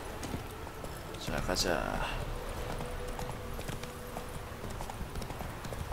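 A horse trots, hooves thudding on a dirt path.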